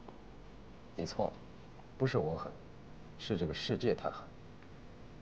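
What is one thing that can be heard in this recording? A man speaks softly and calmly close by.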